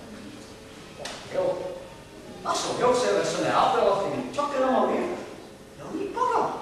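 A man speaks with animation in a hall with some echo.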